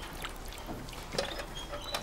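Coins clink in a metal box.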